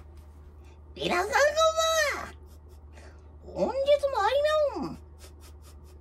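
A woman sings two long, sustained notes nearby, with pitch swooping.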